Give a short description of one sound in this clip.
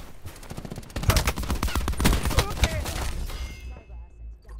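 A loud explosion bursts with debris scattering.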